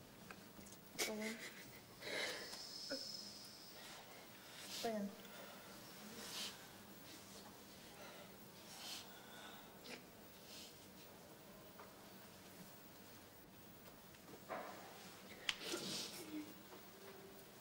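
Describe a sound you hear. A woman speaks quietly in short, broken phrases.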